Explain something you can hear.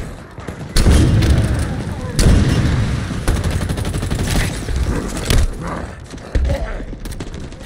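Explosions thud with a deep rumble.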